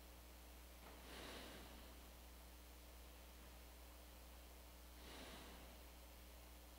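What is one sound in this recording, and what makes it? A man breathes out slowly and deeply close to a microphone.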